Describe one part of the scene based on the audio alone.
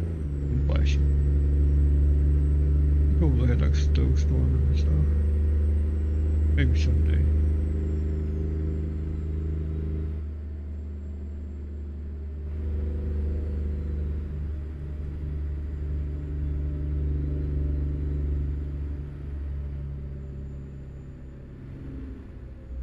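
Tyres hum on the road.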